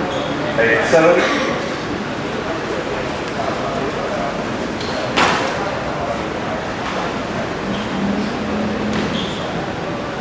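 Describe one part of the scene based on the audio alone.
A crowd murmurs in an echoing hall.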